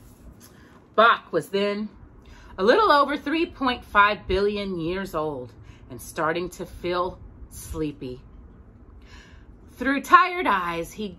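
A woman reads aloud close by, softly and with expression.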